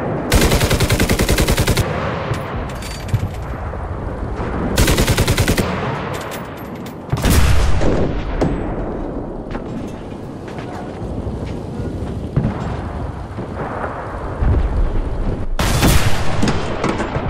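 A machine gun fires rapid bursts.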